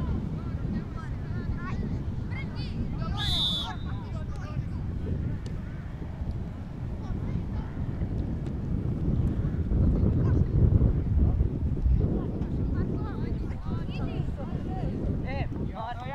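Young women shout to each other across a field from a distance.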